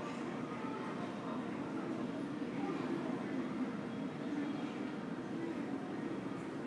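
A steady low hum fills a large echoing hall.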